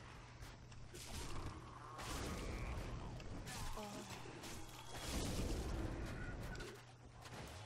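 Swords clash and strike bodies in a fight.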